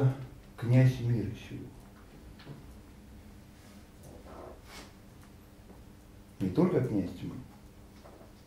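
An elderly man speaks calmly in short bursts, with pauses.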